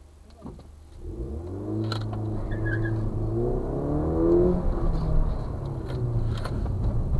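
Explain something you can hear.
A car engine revs and accelerates hard, heard from inside the car.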